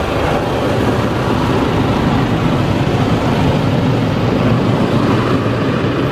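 Rotating brushes scrub and slap against a car.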